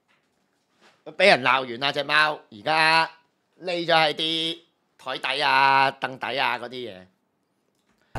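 A young man speaks and laughs loudly with animation, close to a microphone.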